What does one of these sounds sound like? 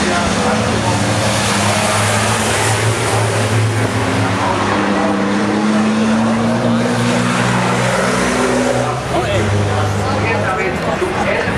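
Truck engines rise and fall in pitch as the trucks shift gears.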